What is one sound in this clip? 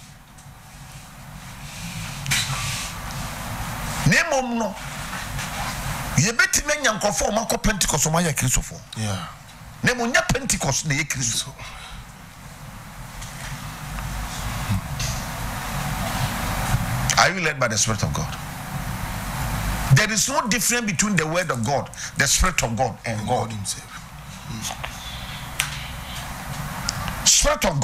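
A middle-aged man speaks with animation into a close microphone.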